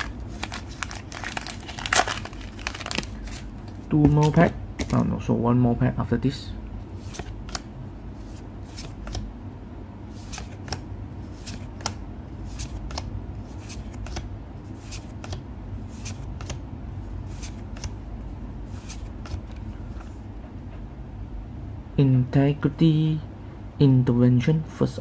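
Glossy trading cards slide and flick against one another as a hand leafs through them.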